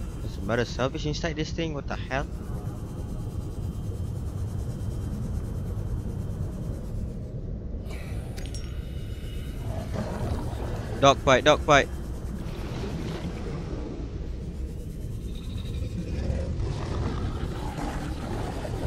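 A submersible's engine hums steadily underwater.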